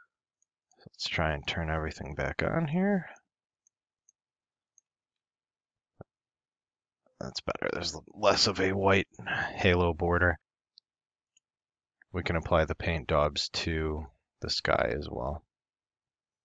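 A man talks calmly into a close microphone, in short bursts with pauses.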